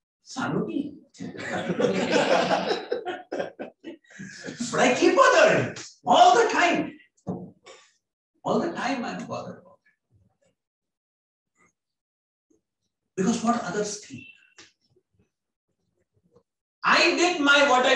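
A middle-aged man speaks with animation into a microphone, with pauses.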